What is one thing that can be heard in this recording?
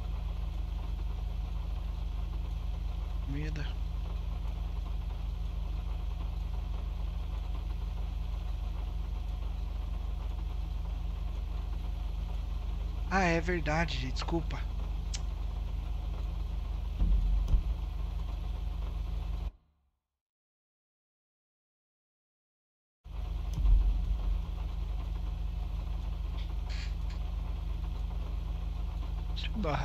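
A car engine idles with a low steady hum.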